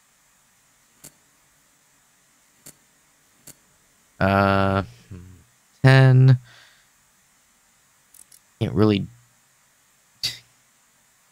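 A combination dial clicks as it turns.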